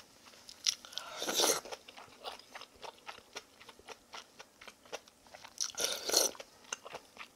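A woman slurps food loudly close by.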